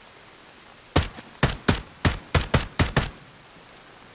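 A rifle fires a quick series of sharp shots.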